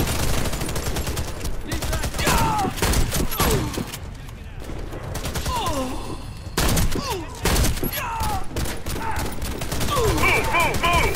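Gunfire rings out in short bursts of shots.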